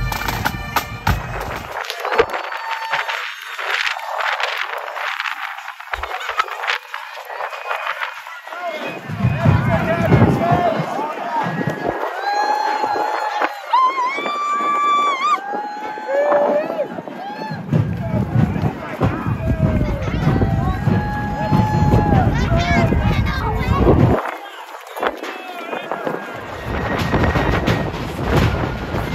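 A crowd of marchers and onlookers chatters outdoors.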